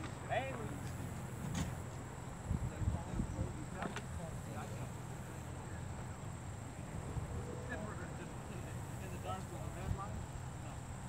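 A man talks calmly at a distance.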